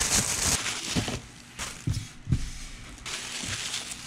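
Cardboard scrapes and rustles as hands handle it.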